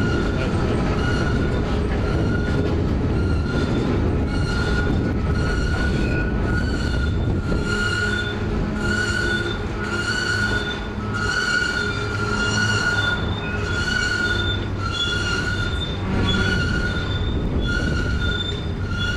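Train wheels squeal against the rails in repeated bursts.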